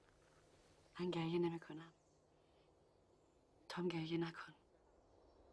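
A young woman speaks quietly and emotionally, close by.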